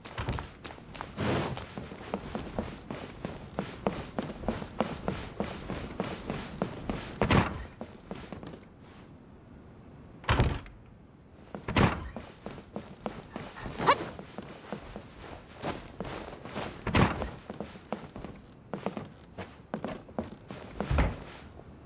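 Quick footsteps run across a wooden floor.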